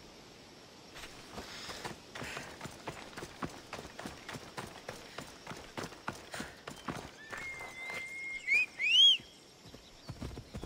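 Footsteps run quickly on a dirt path.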